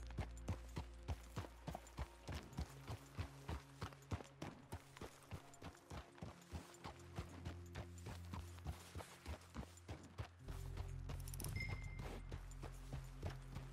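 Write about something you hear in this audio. A horse's hooves thud quickly on a dirt trail.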